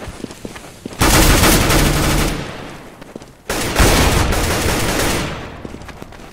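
Rifle gunfire rattles in loud bursts.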